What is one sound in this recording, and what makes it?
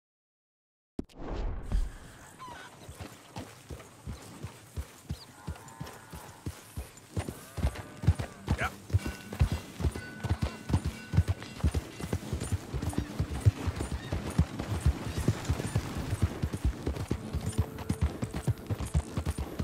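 A horse's hooves thud rhythmically on a dirt track.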